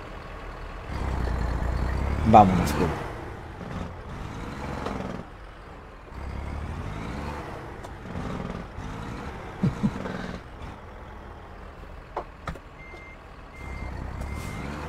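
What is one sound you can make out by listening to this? A truck engine rumbles and revs at low speed.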